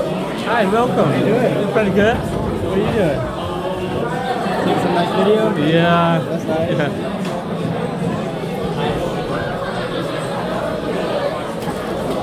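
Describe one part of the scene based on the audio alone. A crowd of young people chatters loudly in a large room.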